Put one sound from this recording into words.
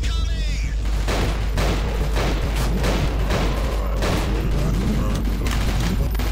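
A pistol fires several sharp shots in a large echoing room.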